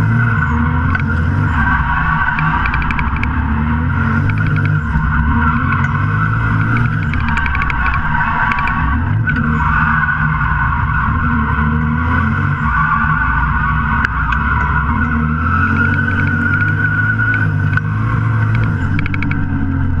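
Tyres squeal on pavement during turns.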